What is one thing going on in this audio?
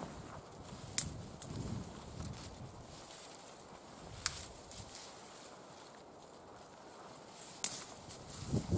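Twigs snap sharply.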